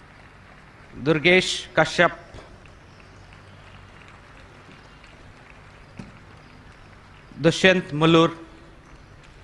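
A man speaks briefly, loud and clear.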